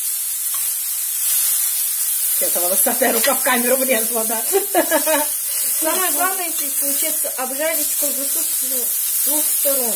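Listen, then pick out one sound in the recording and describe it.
A spoon scrapes and stirs food in a frying pan.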